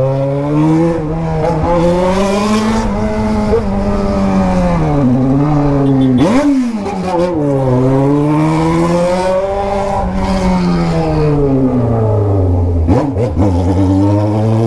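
A motorcycle engine hums and revs up and down as the bike rides along.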